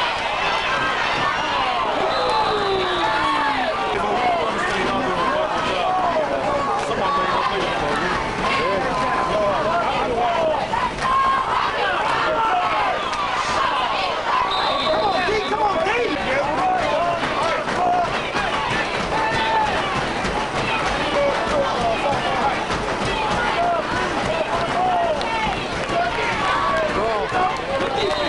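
A large crowd cheers and shouts from the stands, outdoors.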